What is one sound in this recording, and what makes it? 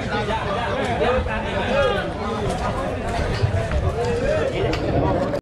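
A crowd cheers and shouts loudly around a ring.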